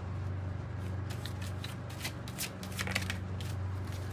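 Playing cards shuffle and flick softly between hands.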